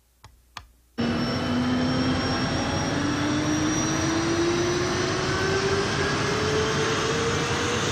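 A vacuum cleaner roars loudly, its pitch slowly rising.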